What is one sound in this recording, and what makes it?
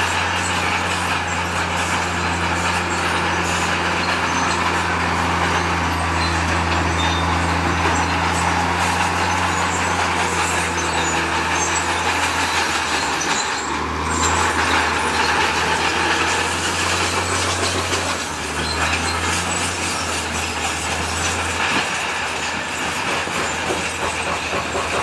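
A bulldozer's blade scrapes and pushes loose rocks.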